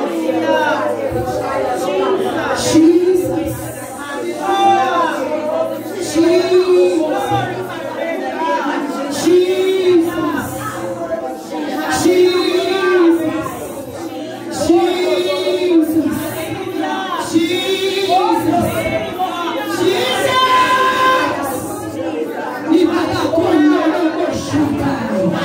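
A woman prays loudly and fervently into a microphone, heard through loudspeakers.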